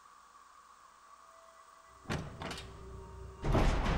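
A metal door handle clicks as it turns.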